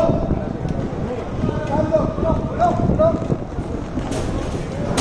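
Inline skate wheels rumble and roll across a hard court.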